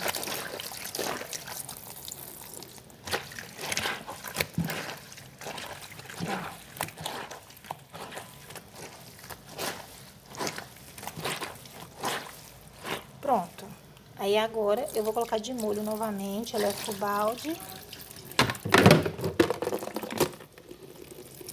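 Wet cloth squelches as hands scrub it in water.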